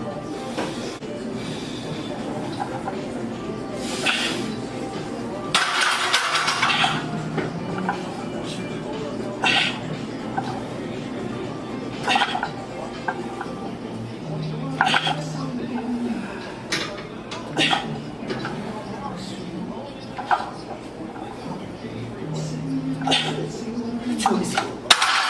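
A man exhales forcefully during heavy squats.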